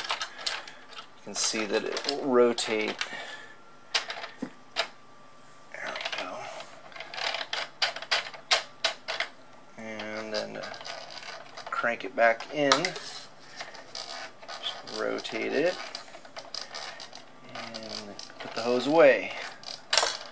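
Small plastic parts click and rattle as a toy is handled.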